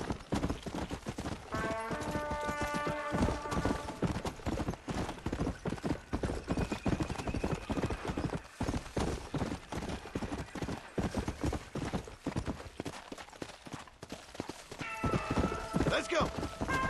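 A horse gallops quickly over dry ground, hooves thudding in a steady rhythm.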